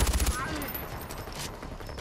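A rifle clicks and clatters as it is reloaded.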